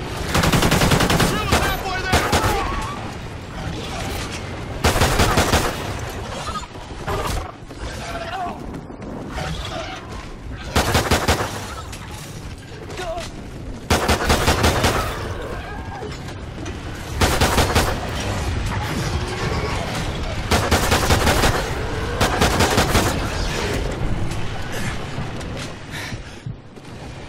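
A pistol fires rapid gunshots.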